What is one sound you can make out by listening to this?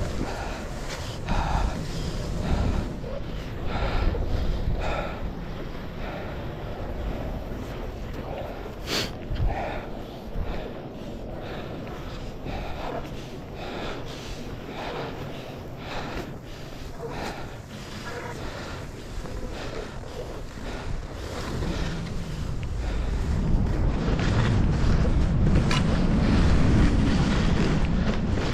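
Wind rumbles outdoors and grows stronger toward the end.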